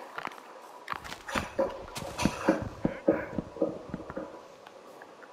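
An axe chops at a tree trunk with quick, hollow knocks.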